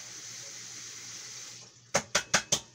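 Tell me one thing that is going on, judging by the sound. A gas burner hisses softly on a stove.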